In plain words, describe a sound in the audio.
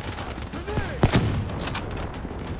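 A rifle fires a single loud, sharp shot that echoes briefly.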